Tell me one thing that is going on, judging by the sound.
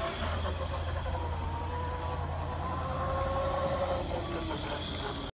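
A small go-kart engine hums steadily as it drives closer.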